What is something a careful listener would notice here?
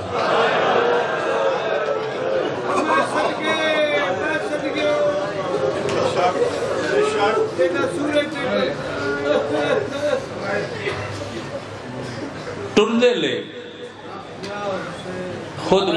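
A middle-aged man speaks with feeling into a microphone, heard through loudspeakers.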